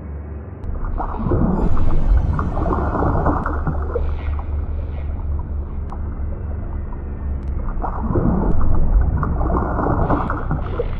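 Legs kick and splash in water, heard muffled from underwater.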